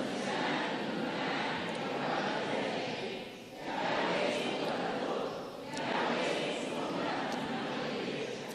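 An elderly man speaks steadily into a microphone, heard through a loudspeaker in a hall.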